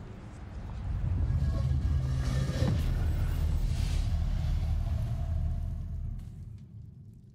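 A heavy stone door rumbles open with a deep grinding.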